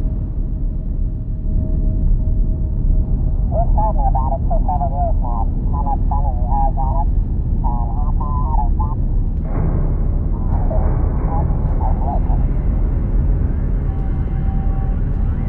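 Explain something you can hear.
A vehicle engine rumbles low and steady.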